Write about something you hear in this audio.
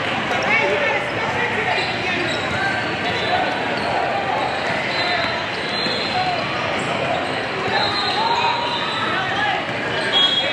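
A crowd of voices chatters and echoes through a large hall.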